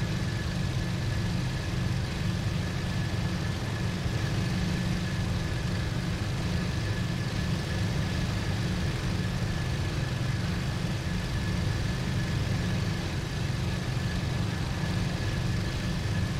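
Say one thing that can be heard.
Wind rushes past an aircraft canopy.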